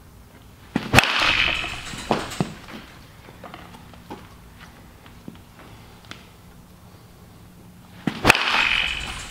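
A bat sharply cracks against a ball twice.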